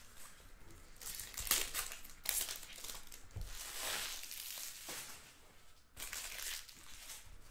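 Plastic card wrappers crinkle and rustle.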